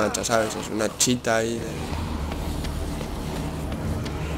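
Footsteps run on pavement.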